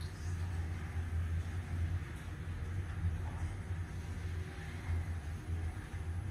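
An elevator hums and rumbles steadily as it rises.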